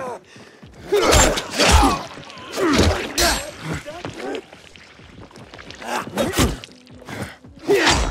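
A melee weapon strikes flesh with heavy thuds.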